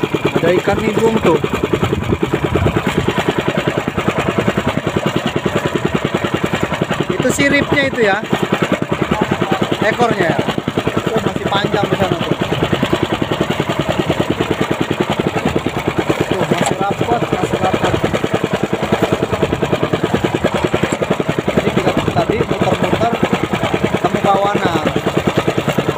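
A boat engine chugs steadily and loudly throughout.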